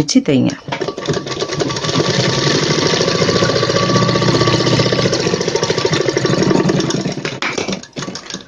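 A sewing machine runs steadily, stitching fabric.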